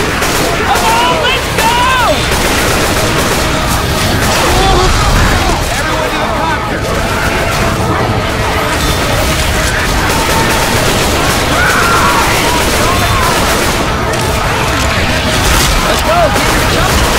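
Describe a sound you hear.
Zombies snarl and shriek nearby.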